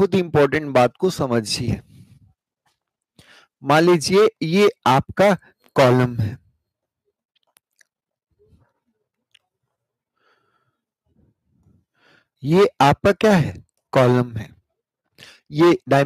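A man speaks calmly through a close microphone, in short bursts with pauses.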